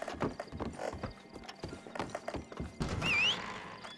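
Boots thump on a wooden floor.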